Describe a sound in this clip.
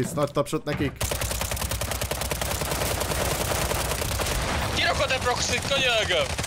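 Rapid automatic gunfire rattles steadily.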